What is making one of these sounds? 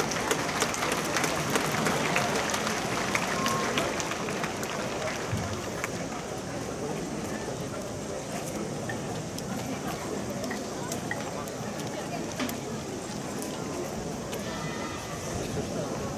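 Young people nearby talk and call out.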